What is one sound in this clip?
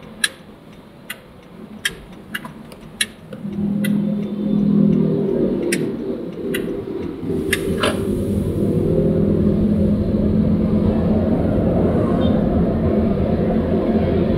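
Road traffic rumbles around the car.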